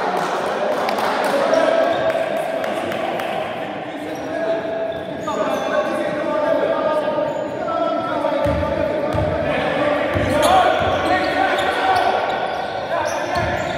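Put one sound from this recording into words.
Sneakers squeak on a hard floor.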